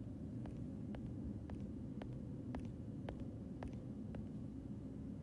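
Footsteps tap at an even, unhurried pace on a hard floor.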